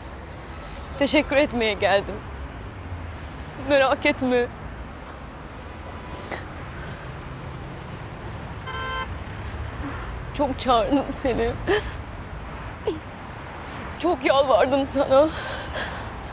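A young woman speaks tearfully and with emotion close by.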